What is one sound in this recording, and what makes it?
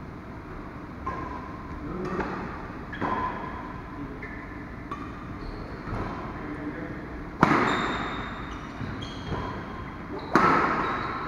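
Badminton rackets strike a shuttlecock in a large echoing hall.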